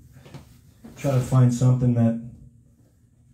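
A man sings a short phrase into a microphone.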